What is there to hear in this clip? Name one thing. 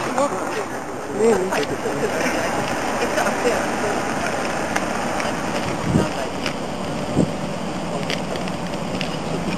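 A car engine hums as a car drives closer and slows.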